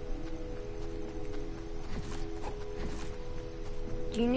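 Footsteps run quickly across grass.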